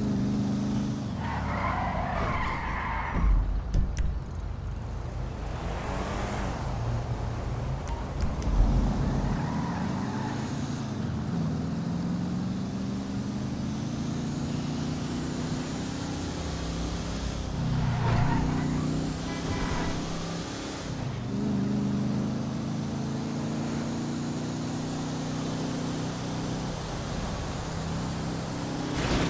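A car engine drones steadily, its pitch rising and falling as the car drives.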